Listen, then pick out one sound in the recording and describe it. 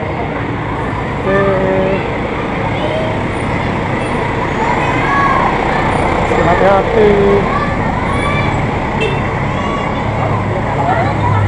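Bus engines idle nearby.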